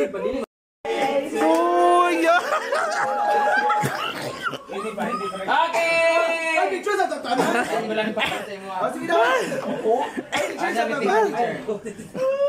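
A middle-aged woman sings loudly and cheerfully close by.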